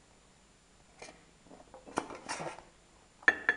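A knife scrapes against a metal pan.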